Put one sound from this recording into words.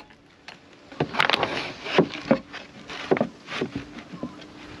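Plastic boards knock and scrape as they are handled.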